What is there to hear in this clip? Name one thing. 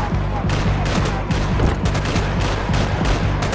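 Footsteps crunch over rubble and debris.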